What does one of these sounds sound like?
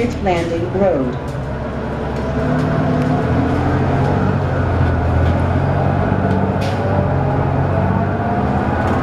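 Loose fittings rattle and clatter inside the moving bus.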